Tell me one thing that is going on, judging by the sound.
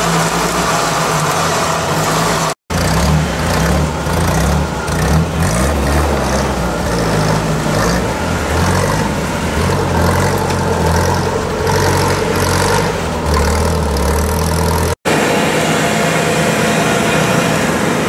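An off-road engine revs hard and labours through mud.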